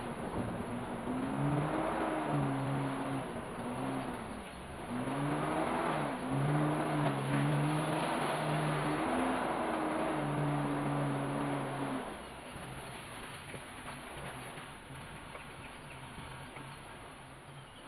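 Tyres roll and crunch over a bumpy dirt track.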